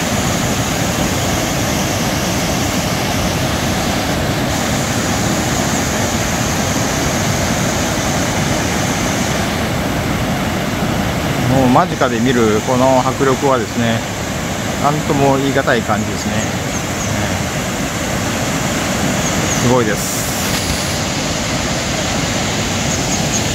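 A waterfall rushes and roars steadily close by.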